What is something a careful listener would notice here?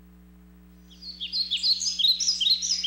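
Birds chirp and twitter loudly.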